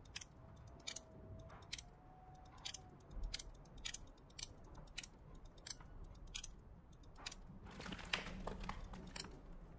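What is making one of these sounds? A combination lock's dials click as they turn.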